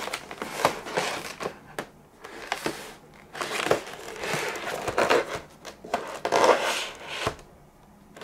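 Hands rustle and handle a cardboard box.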